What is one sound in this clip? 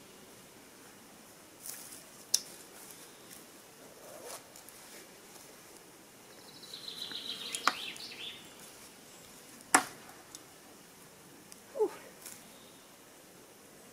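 A woman rustles and knocks outdoor gear.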